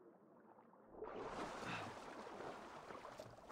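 Water splashes loudly as a swimmer breaks the surface.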